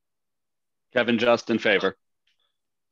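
A man speaks cheerfully over an online call.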